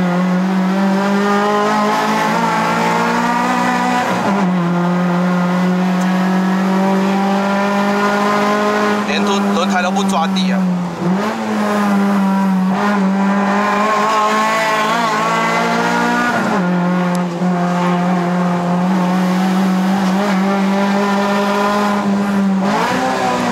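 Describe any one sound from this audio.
A car engine revs hard and drops between gear changes.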